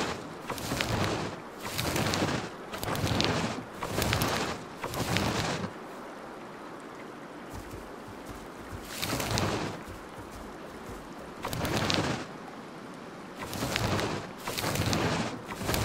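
A large animal's heavy footsteps thud and rustle through grass.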